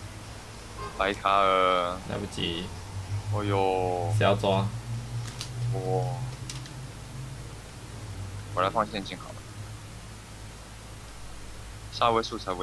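A small cat-like creature cries out in short, high calls.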